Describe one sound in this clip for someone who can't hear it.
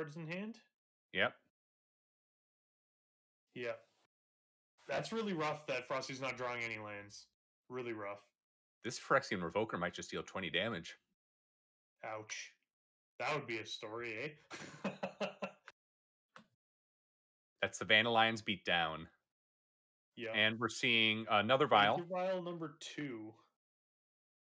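A young man talks with animation through a microphone, in bursts with pauses.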